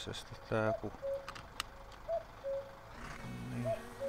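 A seatbelt clicks shut.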